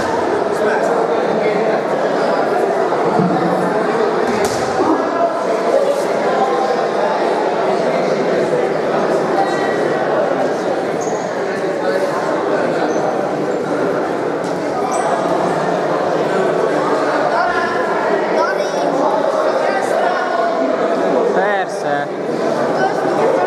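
A man calls out instructions to a boxer.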